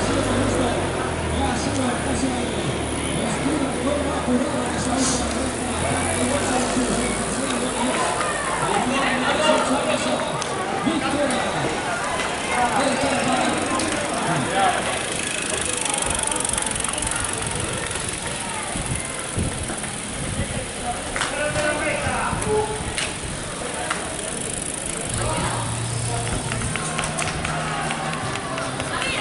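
Bicycles whir past on the road.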